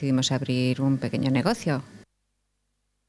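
A middle-aged woman speaks calmly into a microphone, close by.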